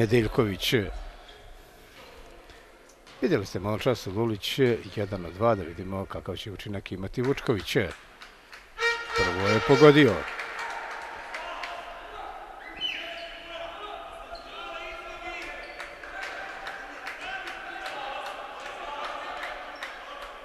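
A sparse crowd murmurs in a large echoing hall.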